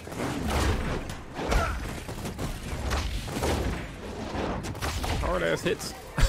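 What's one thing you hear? Punches and impacts thud in a video game fight.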